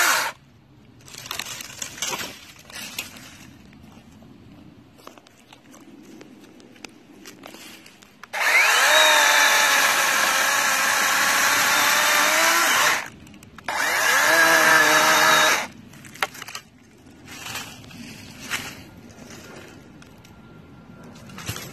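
Dry twigs and branches rustle and snap as they are moved by hand and foot.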